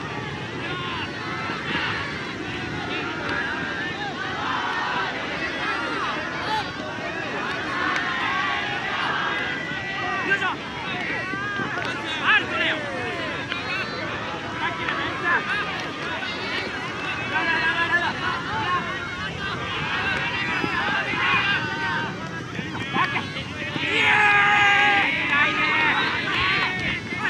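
Many young people shout and call out across an open field, some near and some far.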